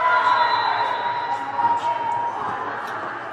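A referee's whistle blows a long, steady blast in a large echoing hall.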